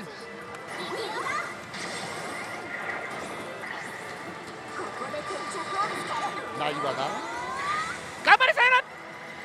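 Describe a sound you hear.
A slot machine plays chiming electronic music and sound effects.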